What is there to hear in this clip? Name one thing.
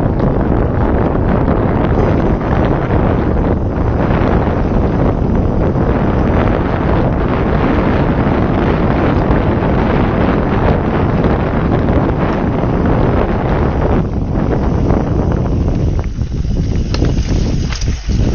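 Wind rushes loudly past a moving rider.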